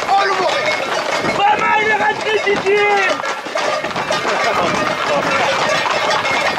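A crowd of men shouts and cheers close by, outdoors.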